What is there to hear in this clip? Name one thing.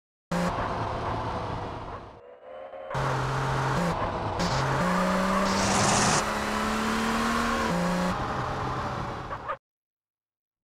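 A car engine revs and hums steadily as the car drives.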